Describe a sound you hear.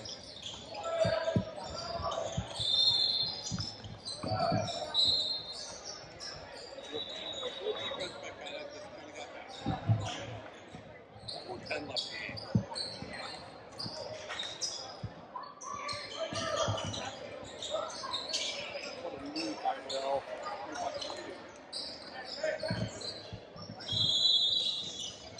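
Players and spectators call out in a large echoing gym.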